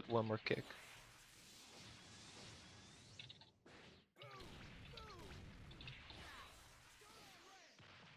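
Energy blasts whoosh and burst.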